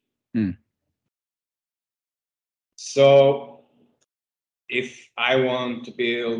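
A man talks casually over an online call, in short bursts.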